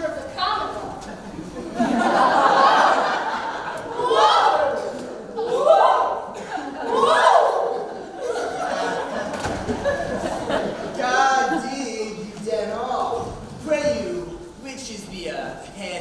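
A young man speaks with animation in a large hall.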